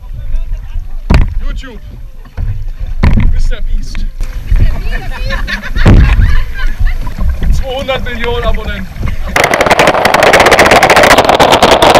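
A paddle splashes in the water.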